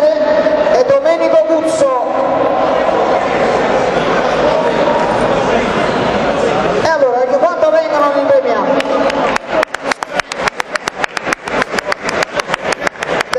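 Several men talk nearby in a large echoing hall.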